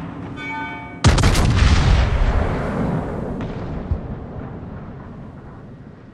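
A warship's big guns fire a loud booming salvo that rumbles away slowly.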